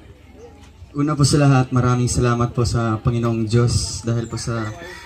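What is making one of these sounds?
A young man speaks with feeling into a microphone, heard through loudspeakers.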